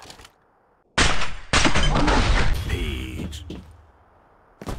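A rifle fires a single loud shot that booms and echoes away.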